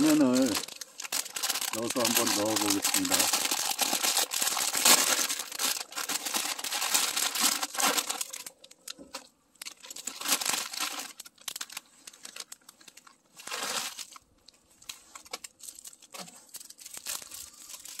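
Water boils and bubbles in a pot.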